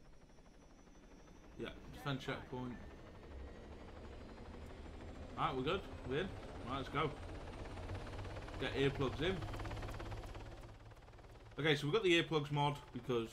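A helicopter's rotor whirs and thumps steadily.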